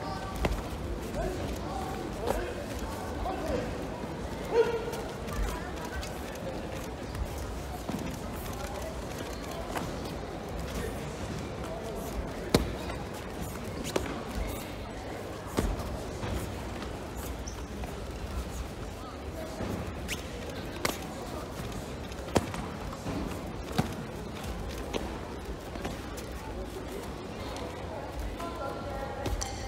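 A crowd murmurs in the background of a large echoing hall.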